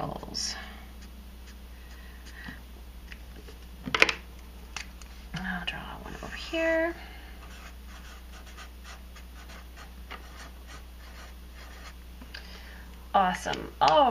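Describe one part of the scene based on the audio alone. A felt marker scratches and squeaks on paper.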